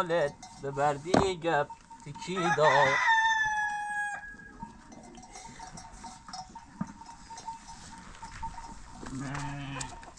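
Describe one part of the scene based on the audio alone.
Sheep bleat nearby with quavering cries.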